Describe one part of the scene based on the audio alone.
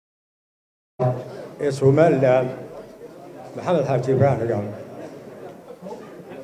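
A middle-aged man speaks steadily into a microphone, heard through a loudspeaker system.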